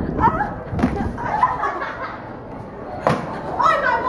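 A young woman thuds onto a hard floor.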